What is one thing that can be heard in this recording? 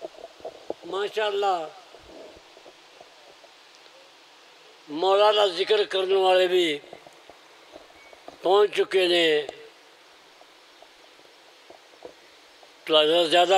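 An elderly man sings a mournful chant into a microphone in long drawn-out phrases.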